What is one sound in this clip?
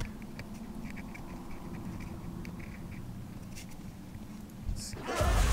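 Footsteps patter steadily on the ground.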